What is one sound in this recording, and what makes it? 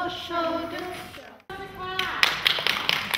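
Young children sing together in an echoing hall.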